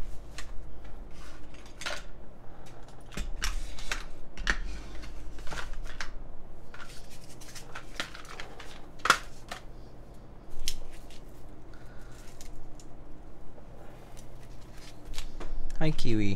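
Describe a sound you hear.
Fingers tap and click on a keyboard case.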